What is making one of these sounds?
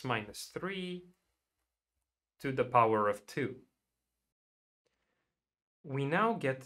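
A young man speaks calmly and closely into a microphone, in short phrases with pauses.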